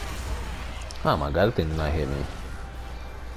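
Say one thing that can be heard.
A large beast lets out a loud, wavering roar.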